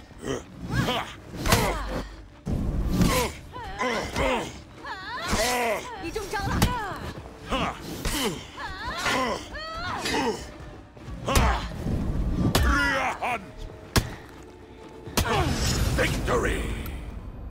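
Metal blades clash and strike in quick, sharp blows.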